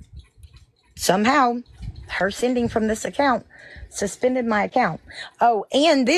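A woman speaks with animation close to a phone microphone.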